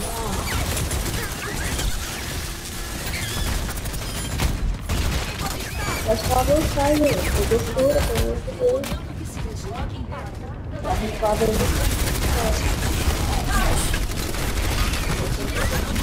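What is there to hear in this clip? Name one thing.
Guns fire rapidly in a video game.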